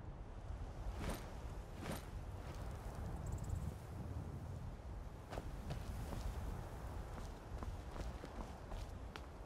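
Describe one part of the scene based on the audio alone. Footsteps scuff on rock now and then.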